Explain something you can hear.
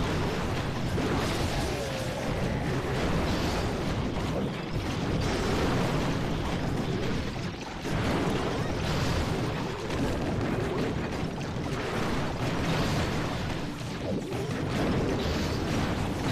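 Explosions and cannon fire boom in a game battle.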